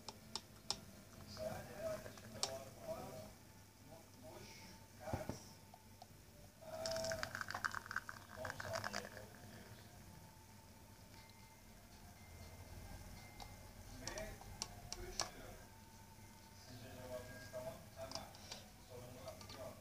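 Liquid pours from a glass jug into a cup.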